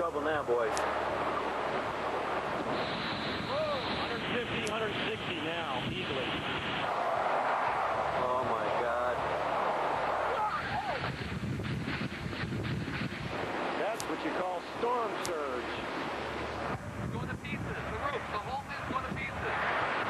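Heavy rain lashes down.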